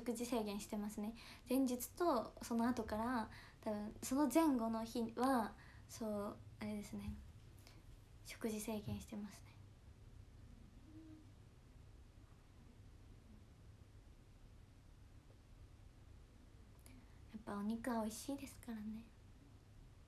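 A young woman talks calmly and close to a microphone, with pauses.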